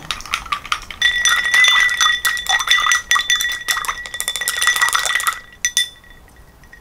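A stick stirs rapidly in a glass, ringing and clinking.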